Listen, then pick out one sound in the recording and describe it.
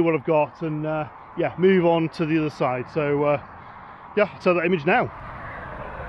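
A man speaks calmly and close by outdoors.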